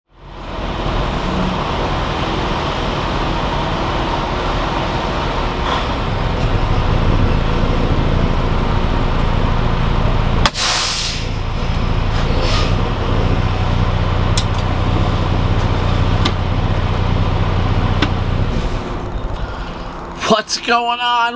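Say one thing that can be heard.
A truck engine rumbles steadily inside the cab.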